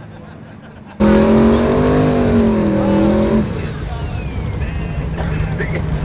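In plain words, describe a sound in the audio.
A race car engine screams during a tyre-spinning burnout.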